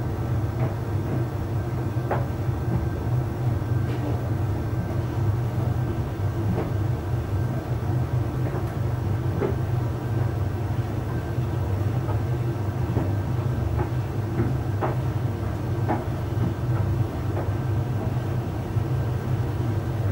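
A tumble dryer hums and rumbles steadily.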